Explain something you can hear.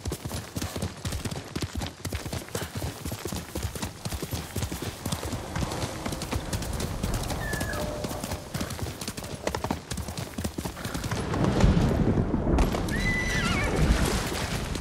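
Horse hooves gallop quickly over the ground.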